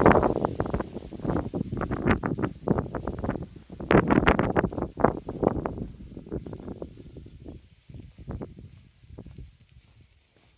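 Footsteps tread steadily on a paved lane.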